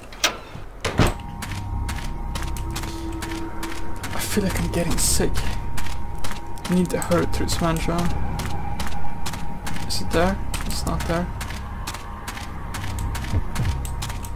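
Footsteps tread slowly over rough ground.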